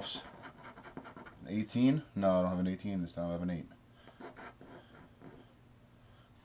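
A coin scratches at a card.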